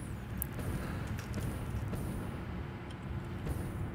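Steam hisses softly from venting machinery.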